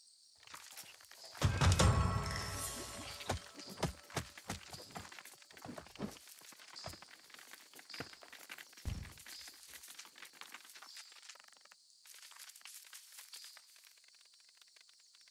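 Small footsteps patter and rustle over grass and dry leaves.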